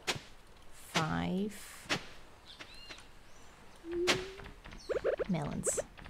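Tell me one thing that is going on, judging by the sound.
A young woman speaks casually into a close microphone.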